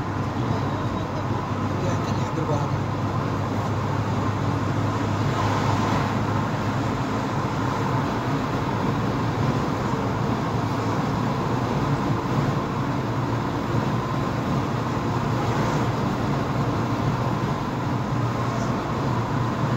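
A car engine hums steadily while driving on a highway.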